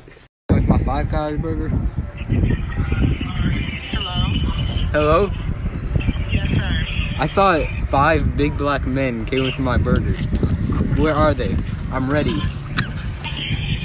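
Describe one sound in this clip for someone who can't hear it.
A young man speaks closely into a phone.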